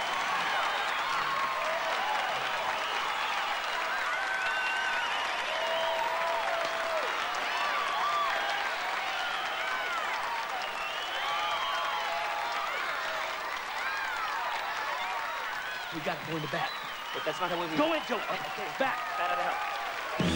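People in a crowd whistle and cheer.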